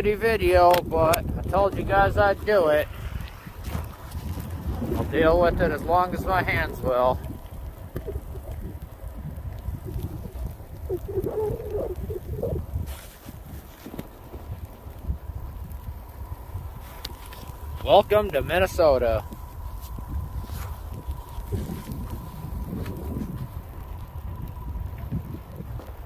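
Wind blusters steadily outdoors.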